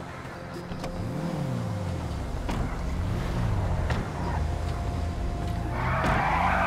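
A car engine starts and revs.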